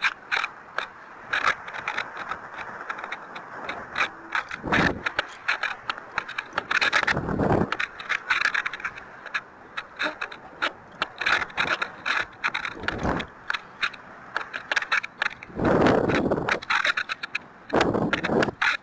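Wind rushes and buffets loudly past in gusts.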